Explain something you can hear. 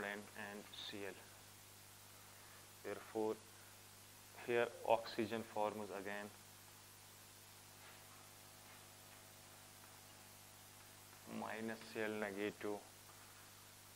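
Chalk taps and scratches on a board.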